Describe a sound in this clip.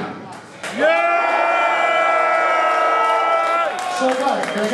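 A crowd of young people cheers and shouts loudly in an echoing hall.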